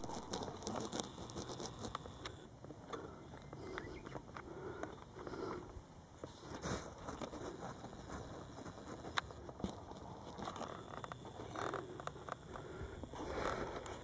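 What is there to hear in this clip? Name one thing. Footsteps crunch and rustle through dry leaves and twigs.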